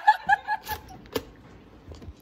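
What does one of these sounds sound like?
A toaster lever clicks down.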